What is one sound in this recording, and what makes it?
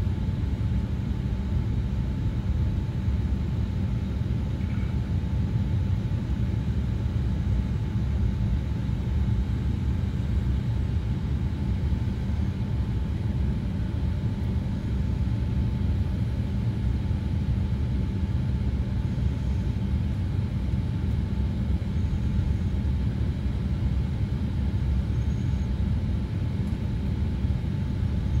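An airliner's engines roar in a steady, low drone from inside the cabin.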